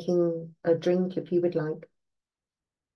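An older woman speaks briefly and calmly, close to a microphone.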